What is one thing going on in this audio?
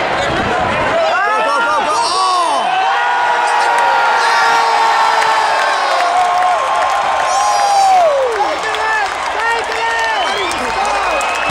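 Fans nearby whoop and shout close by.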